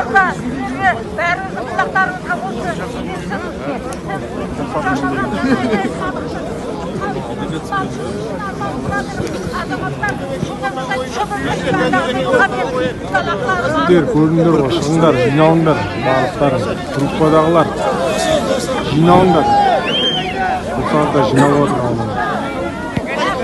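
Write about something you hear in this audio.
A large crowd of men murmurs and talks outdoors.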